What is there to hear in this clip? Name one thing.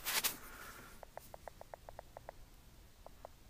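A small electronic device beeps quickly in a short series.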